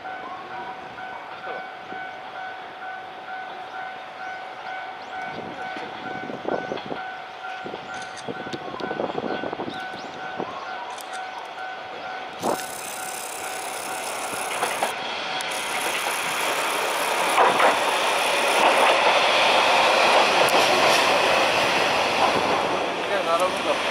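A train approaches on the tracks and rumbles past close by, growing louder.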